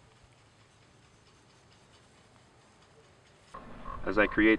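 A knife shaves thin curls off a wooden stick.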